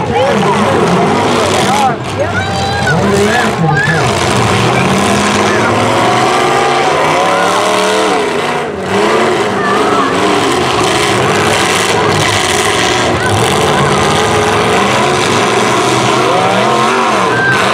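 Loud car engines roar and rev throughout.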